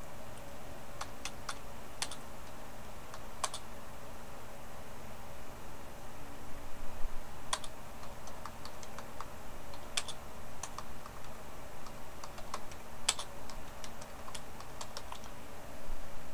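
Keyboard keys click in quick bursts as someone types.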